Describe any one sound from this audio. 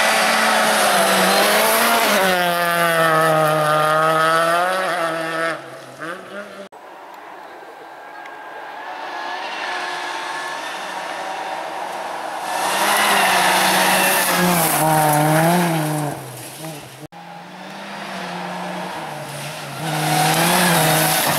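A rally car engine roars loudly and revs up and down as the car speeds past.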